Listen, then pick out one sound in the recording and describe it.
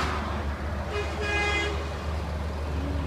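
A truck's horn honks.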